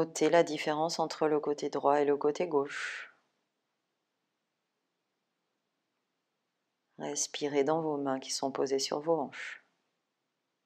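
A woman speaks calmly and slowly, close to the microphone.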